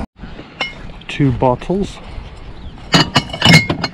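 Glass bottles clink together.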